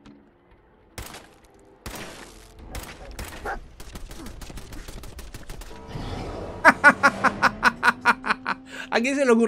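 Gunshots fire in rapid bursts at close range.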